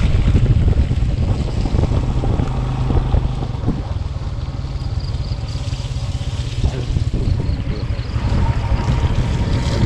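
Tyres roll and bump over a muddy dirt road.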